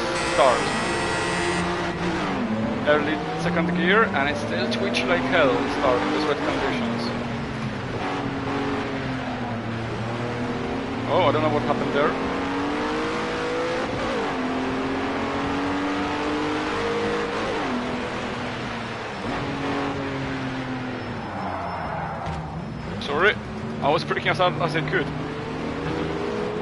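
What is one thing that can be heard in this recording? A race car engine revs up and down as gears shift.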